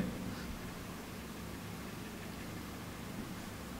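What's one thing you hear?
A young man speaks softly into a microphone.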